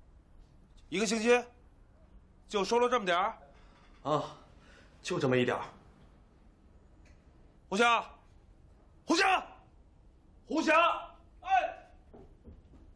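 A middle-aged man speaks sternly and loudly, close by.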